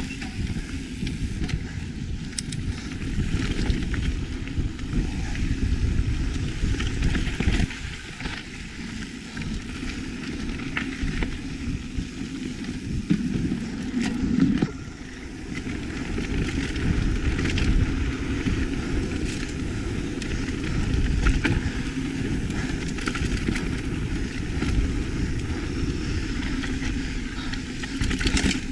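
A bicycle rattles and clicks over bumps.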